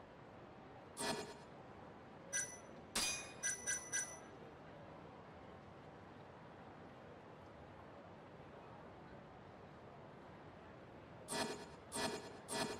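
Short menu blips and clicks sound in quick bursts.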